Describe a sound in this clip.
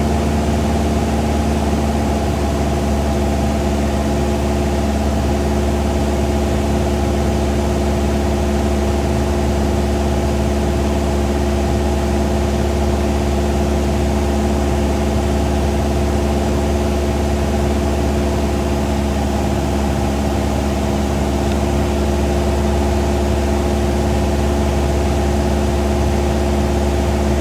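A small plane's propeller engine drones loudly and steadily up close.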